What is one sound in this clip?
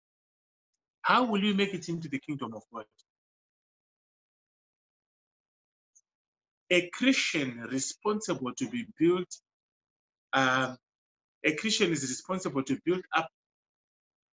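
A man speaks calmly in bursts with pauses, heard through an online call.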